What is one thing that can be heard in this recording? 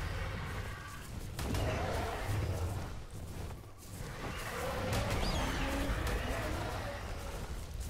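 Heavy blows thud against a creature.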